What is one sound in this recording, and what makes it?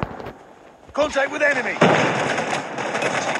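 Gunfire rattles rapidly and loudly.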